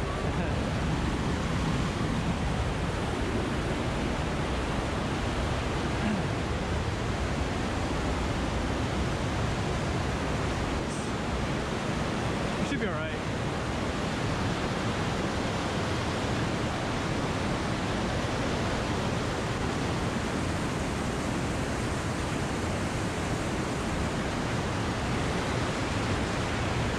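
Rushing water roars loudly through a narrow rock canyon.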